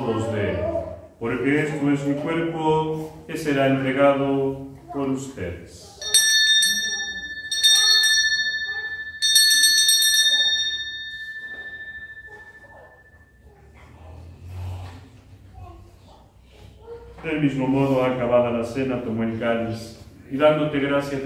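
A young man sings slowly and steadily, heard through a microphone in a room with slight echo.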